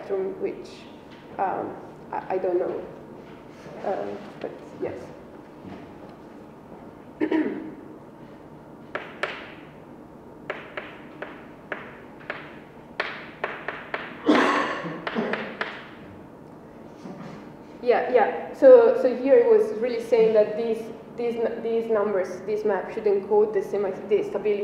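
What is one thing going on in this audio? A young woman speaks calmly and explains at a steady pace.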